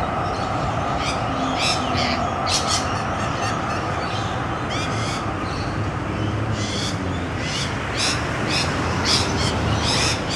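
A rainbow lorikeet screeches in shrill bursts.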